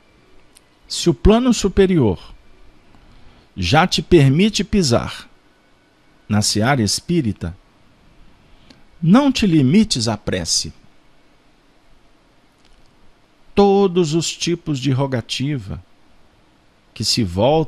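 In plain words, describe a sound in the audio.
A man speaks calmly in short phrases through a microphone.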